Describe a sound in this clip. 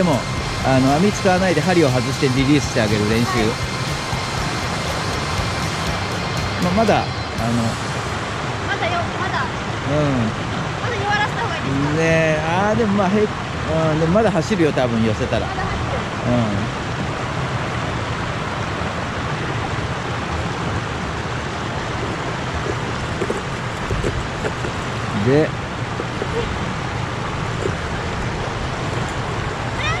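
Shallow water rushes and splashes steadily outdoors.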